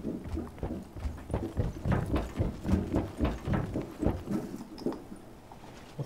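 Footsteps thud quickly on a metal deck.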